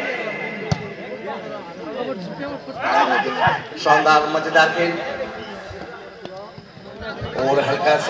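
A ball thuds as a player hits it.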